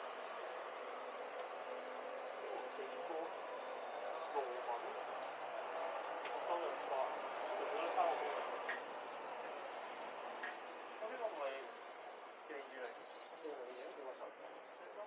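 Adult men and women chat quietly nearby.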